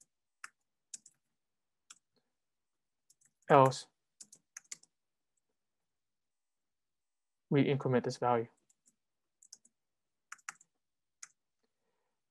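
Computer keys click softly as someone types.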